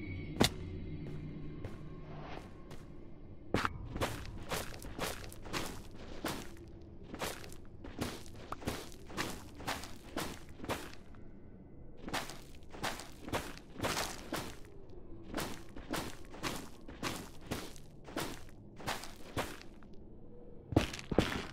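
Blocks crunch and break in quick repeated bursts as a tool digs through them.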